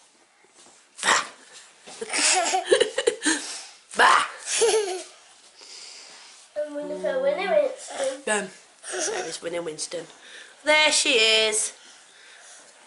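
A toddler babbles and laughs close to the microphone.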